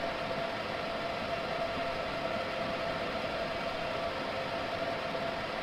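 A train rumbles steadily through a tunnel with a constant whining hum.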